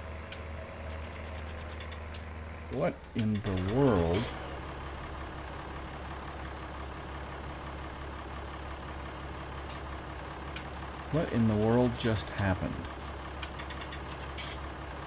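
A diesel tractor engine runs with a low, steady drone.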